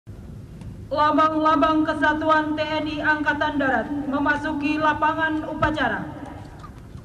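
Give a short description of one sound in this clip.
A group of men sings loudly outdoors.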